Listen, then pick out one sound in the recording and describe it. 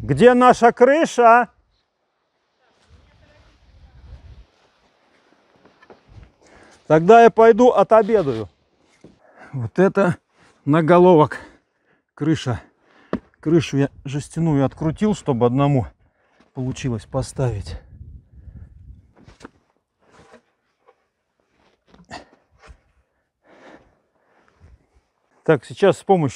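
A man speaks calmly close by, outdoors.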